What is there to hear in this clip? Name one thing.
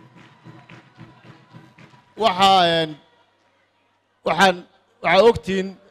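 A man speaks loudly and with emphasis into a microphone over loudspeakers.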